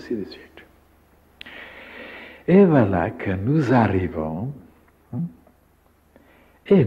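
An elderly man speaks slowly and calmly into a close microphone.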